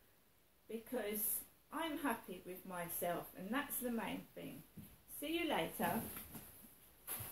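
A middle-aged woman talks close by with animation.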